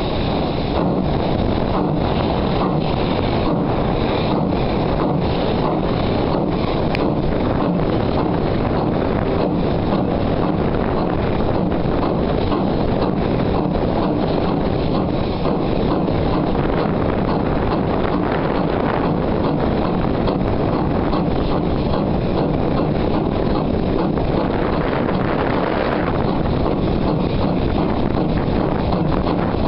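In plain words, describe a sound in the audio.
Wind buffets loudly across the microphone.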